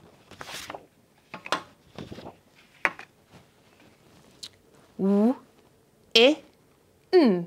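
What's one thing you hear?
A young woman speaks clearly and slowly, sounding out parts of a word close by.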